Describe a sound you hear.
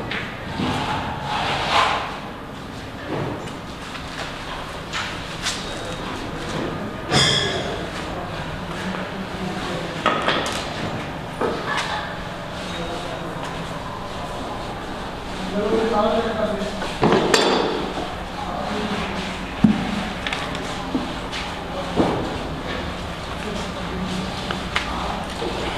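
Wooden beams knock and clatter as a man handles them.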